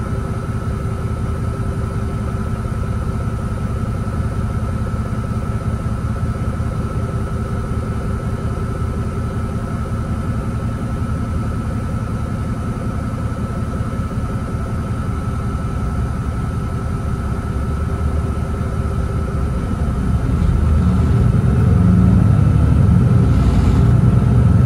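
A diesel city bus engine drones, heard from inside the bus.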